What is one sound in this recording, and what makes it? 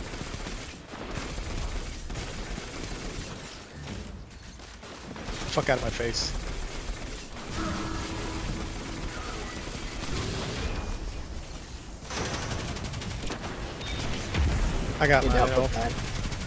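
Rapid gunfire rings out in bursts.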